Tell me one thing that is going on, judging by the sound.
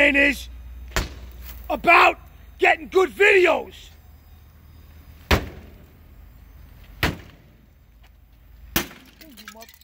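A bat smashes into a car's windshield with loud, sharp cracks.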